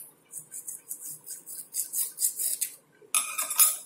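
A metal file rasps quickly against a small metal part.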